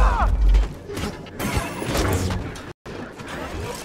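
A blaster bolt hits an energy shield with a crackle.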